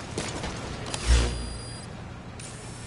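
A deep electronic whoosh sounds once.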